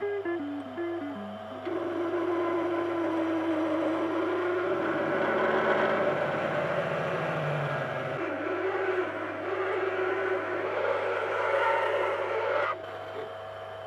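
A metal lathe hums as a drill bit bores into a spinning workpiece.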